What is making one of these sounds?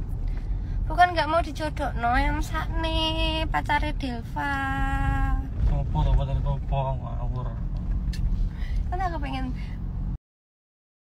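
A young woman speaks with animation, close to a phone microphone.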